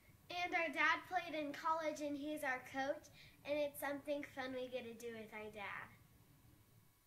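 A young girl speaks with animation close to a microphone.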